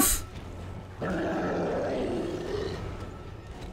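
A heavy metal door slides open with a hiss.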